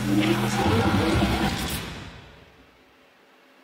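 Loud pop music with a heavy beat plays over loudspeakers, then fades away.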